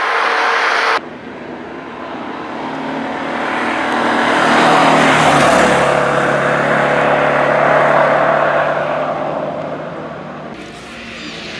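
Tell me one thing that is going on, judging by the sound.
A rally car engine roars through a bend and fades into the distance.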